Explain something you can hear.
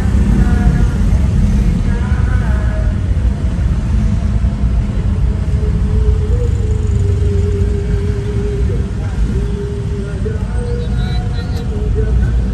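Motorcycle and car engines rumble steadily in slow traffic nearby.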